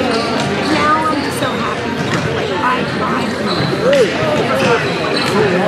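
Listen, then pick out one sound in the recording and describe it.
Young women call out to each other across the hall.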